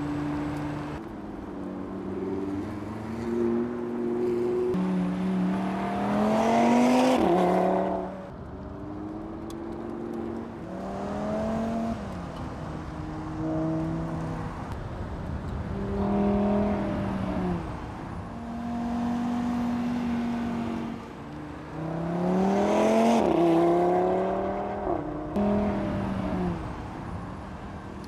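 A sports car engine revs hard, rising in pitch and dropping sharply at each gear change.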